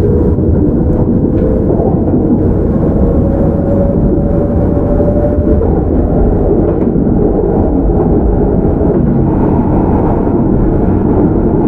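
A train rumbles loudly along the tracks close by.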